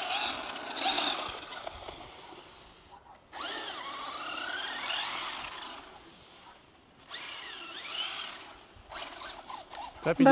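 A small electric motor whines, revving up and down in rising and falling bursts.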